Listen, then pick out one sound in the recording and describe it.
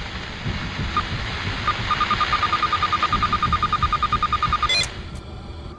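A handheld scanner beeps rapidly and steadily.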